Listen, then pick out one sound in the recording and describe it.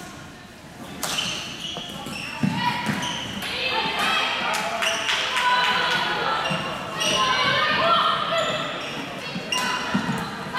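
Sticks clack against the ball and each other on the court.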